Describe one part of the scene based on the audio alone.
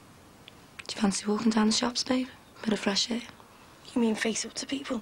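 A woman speaks close by in a weary, upset voice.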